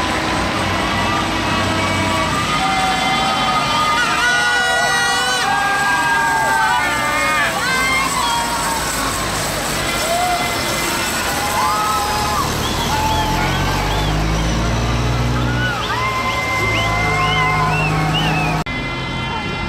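Heavy truck engines rumble as they drive slowly past.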